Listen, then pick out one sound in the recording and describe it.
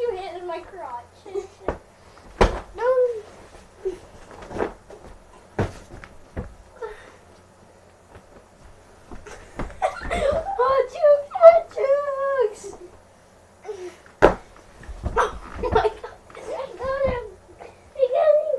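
Bodies thump down onto a soft mattress.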